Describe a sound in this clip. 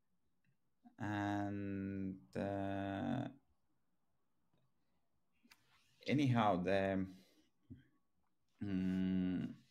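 A young man speaks calmly through an online call microphone, in short drawn-out phrases.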